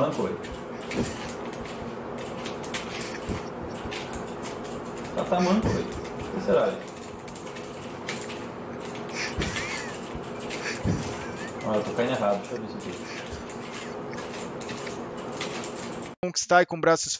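Keyboard keys click rapidly.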